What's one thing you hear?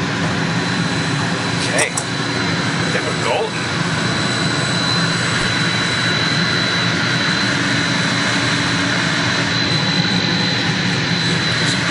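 Electrical equipment hums steadily with a faint high whine.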